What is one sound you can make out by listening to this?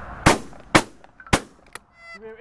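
A shotgun fires several shots outdoors.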